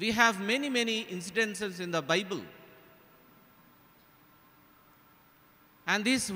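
A man speaks with emphasis into a microphone, heard over a loudspeaker in an echoing hall.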